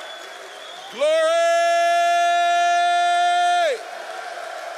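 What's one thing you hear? A man holds a long, loud sung note through a microphone.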